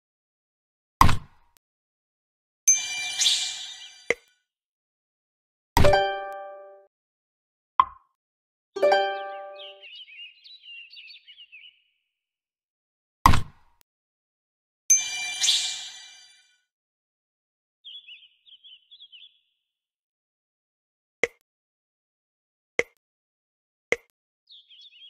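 Game tiles snap into place with short knocks.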